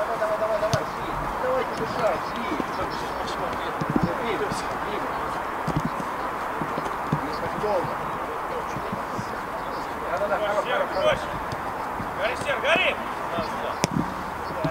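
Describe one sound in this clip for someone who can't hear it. Men shout to each other across an open pitch.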